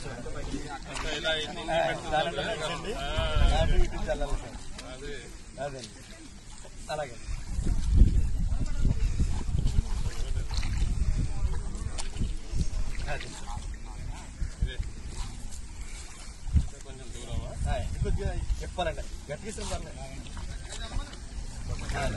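Feet splash through shallow water.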